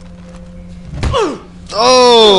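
A blow lands with a heavy thud.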